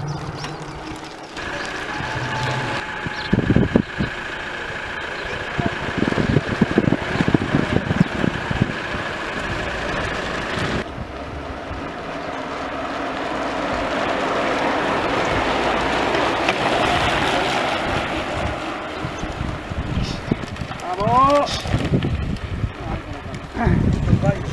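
Bicycle tyres hum over pavement and dirt as riders pass close by.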